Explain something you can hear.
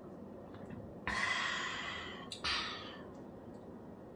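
A woman blows puffs of breath into a small bottle.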